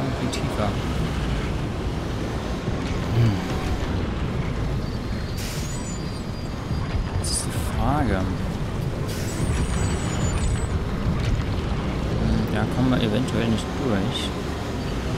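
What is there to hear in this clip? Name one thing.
A heavy vehicle engine rumbles steadily while driving over rough ground.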